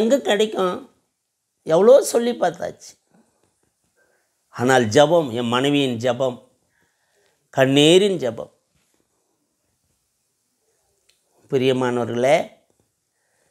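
An older man speaks calmly into a close microphone, in short phrases with pauses.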